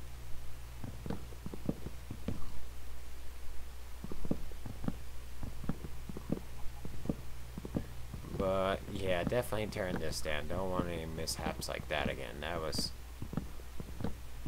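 A hammer breaks blocks with quick, dull crunching knocks.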